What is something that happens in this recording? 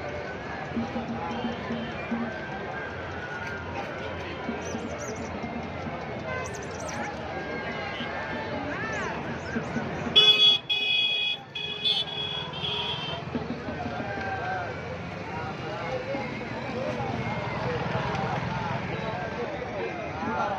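A large crowd chatters all around outdoors.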